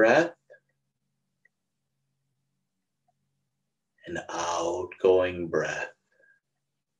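A middle-aged man speaks calmly and close to a microphone, in short bursts with long pauses.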